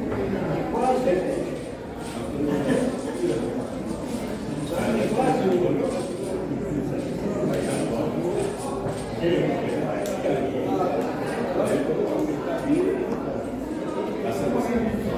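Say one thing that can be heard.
Several elderly men and women chat in the background.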